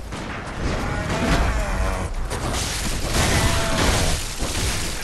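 A creature snarls and growls.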